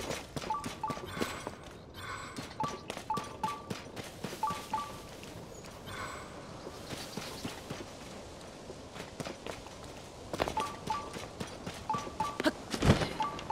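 Quick footsteps patter over grass and rock.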